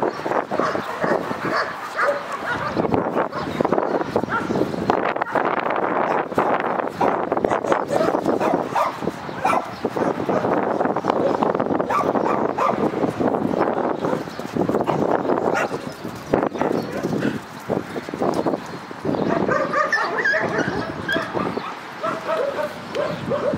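Paws scuffle on sandy ground.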